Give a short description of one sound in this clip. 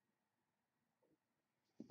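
A man speaks briefly and quietly into a microphone.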